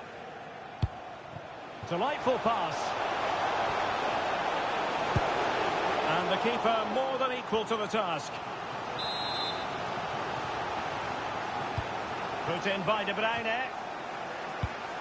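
A large stadium crowd roars and cheers steadily.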